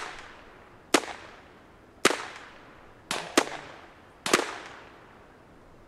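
Gunshots ring out one at a time, echoing outdoors.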